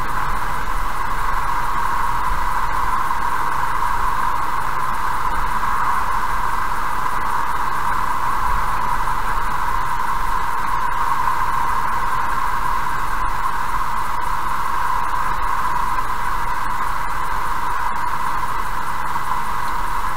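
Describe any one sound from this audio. Tyres roll steadily on a paved road.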